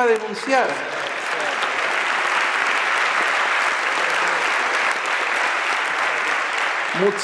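A large audience applauds in an echoing hall.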